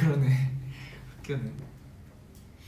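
Two young men laugh together close by.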